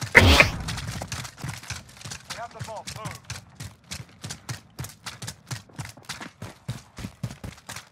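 Quick footsteps crunch on gravel and dirt.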